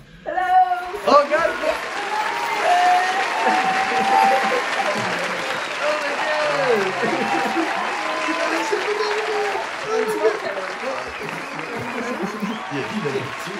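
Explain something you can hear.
A young man laughs nearby.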